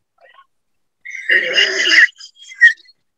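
A woman laughs loudly over an online call.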